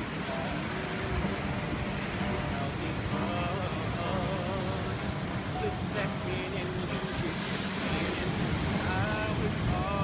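An acoustic guitar is strummed gently.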